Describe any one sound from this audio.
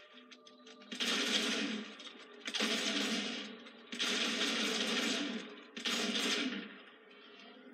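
Loud rushing blasts of game sound effects burst out in several bursts.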